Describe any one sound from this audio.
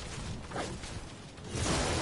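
A bright chime rings as an item is picked up.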